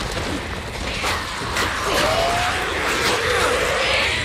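Zombies snarl and shriek.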